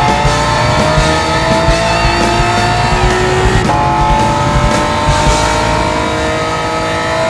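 A racing car engine roars, climbing steadily in pitch.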